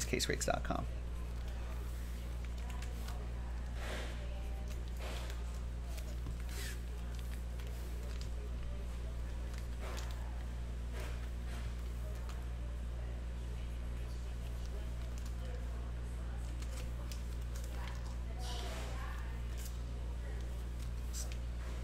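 A marker squeaks and scratches across cards.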